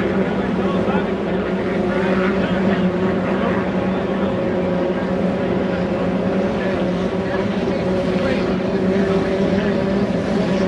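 Spray from a speeding boat hisses and splashes on the water.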